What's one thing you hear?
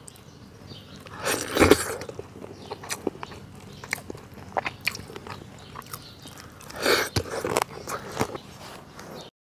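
A man slurps and chews food noisily.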